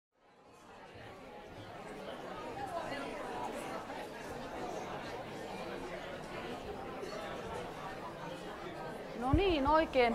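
A large audience murmurs and chatters in an echoing hall.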